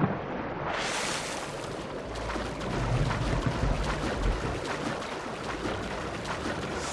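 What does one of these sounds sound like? Water splashes from steady swimming strokes.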